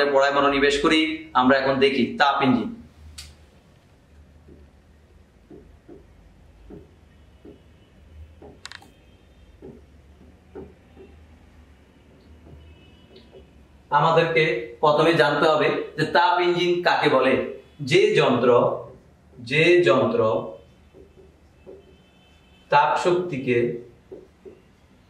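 A man speaks calmly and clearly, pausing at times.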